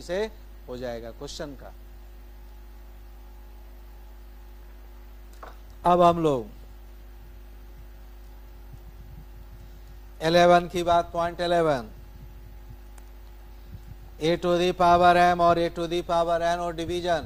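A middle-aged man speaks calmly into a microphone, in short bursts with pauses.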